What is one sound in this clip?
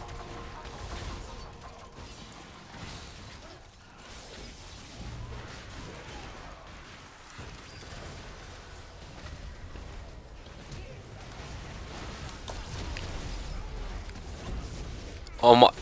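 Magic blasts and weapon hits crackle and thump in a fast video game battle.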